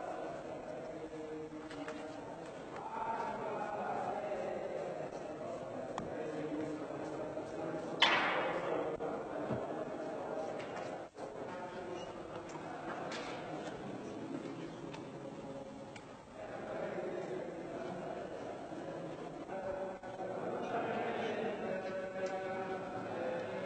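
Men's voices murmur and chant in a large echoing hall.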